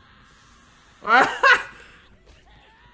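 A young man laughs loudly, close by.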